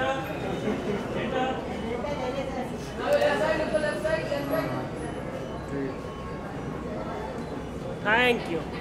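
A crowd of men and women chatter and call out loudly nearby.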